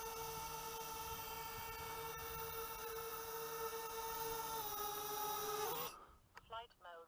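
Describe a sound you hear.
A small drone's propellers buzz with a loud, steady high whine close by.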